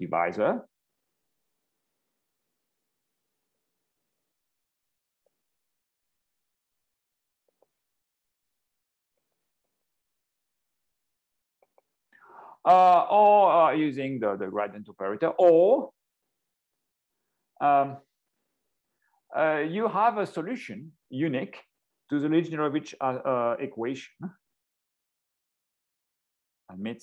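A man speaks calmly through an online call, in pauses.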